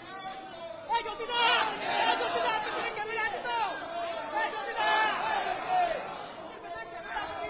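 A crowd of men and women chants slogans loudly outdoors.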